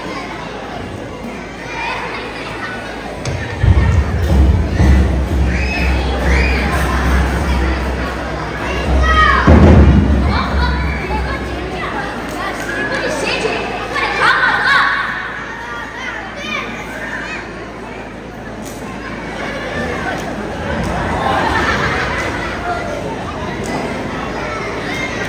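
Children speak loudly in a play, heard through a loudspeaker in an echoing hall.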